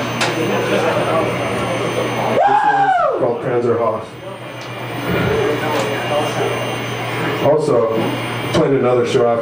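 A band plays loud distorted electric guitars live.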